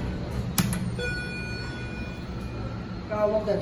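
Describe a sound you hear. An elevator chime rings once.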